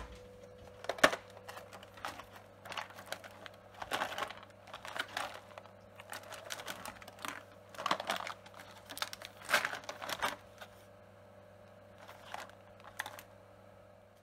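Hands handle a plastic tray, which crinkles and knocks.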